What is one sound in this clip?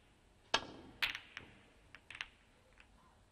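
Snooker balls clack together as the cue ball breaks into the pack of reds.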